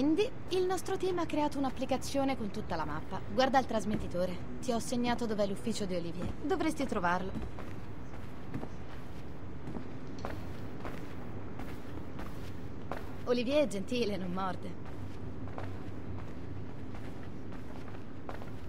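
High heels click on a hard floor as a woman walks.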